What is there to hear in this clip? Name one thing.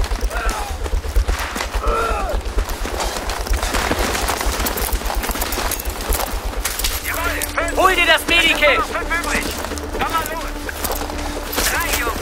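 Footsteps crunch quickly over gravel and rubble.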